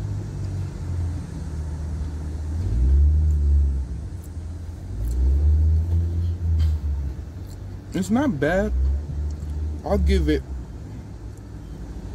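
A young man chews food close by.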